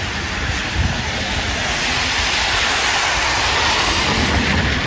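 Car tyres hiss past on a wet road.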